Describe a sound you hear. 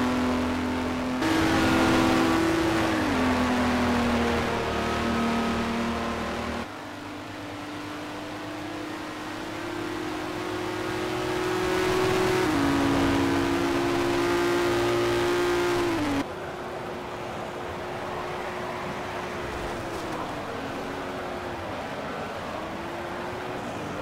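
A racing car engine roars and changes pitch as it shifts gears.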